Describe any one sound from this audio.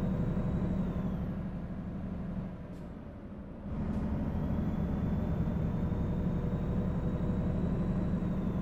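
A truck engine rumbles steadily, dropping briefly before pulling again.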